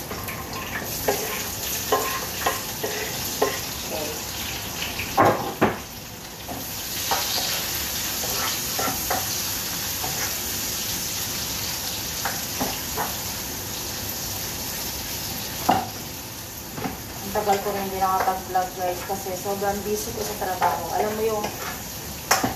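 Pots and utensils clatter against a stove.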